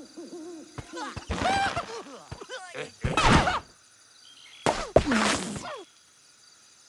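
Cartoon birds squawk and chatter in bursts.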